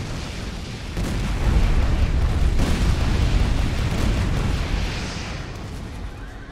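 Explosions boom and roar loudly.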